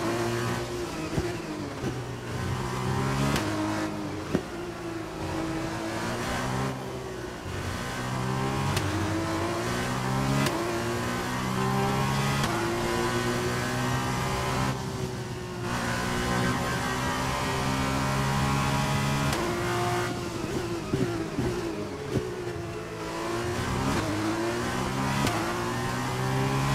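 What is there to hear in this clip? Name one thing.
A racing car engine screams, rising and falling in pitch as it shifts gears.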